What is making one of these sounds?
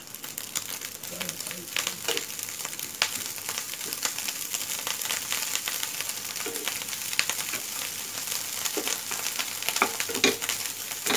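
A wooden spatula scrapes and taps against a pan as food is stirred.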